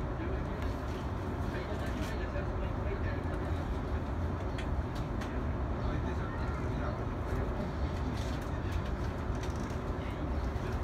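A train rumbles steadily along the track from inside the cab.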